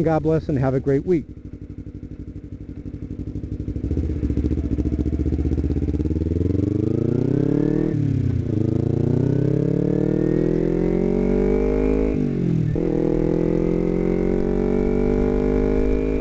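A motorcycle engine revs up, rising in pitch and dropping at each gear change.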